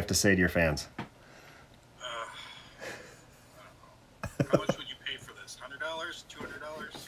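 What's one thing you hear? A middle-aged man talks casually over an online call.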